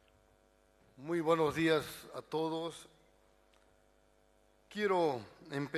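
An older man speaks slowly and formally through a microphone in a large echoing hall.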